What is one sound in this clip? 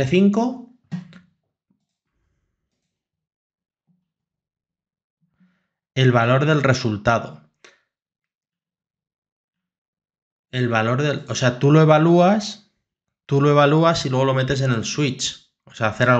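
A man talks calmly and explains, close to a microphone, with pauses.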